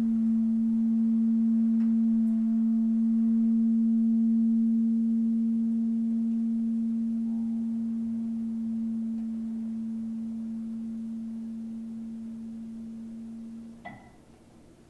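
An electric guitar holds a long humming note that slowly fades.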